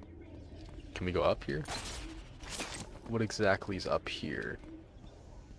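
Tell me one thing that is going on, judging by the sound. A grappling line zips and whooshes.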